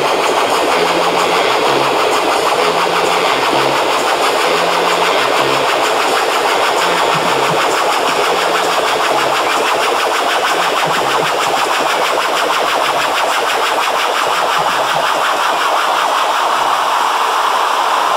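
Loud electronic dance music plays over big speakers.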